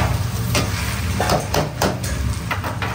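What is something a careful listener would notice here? A metal ladle clanks against a wok.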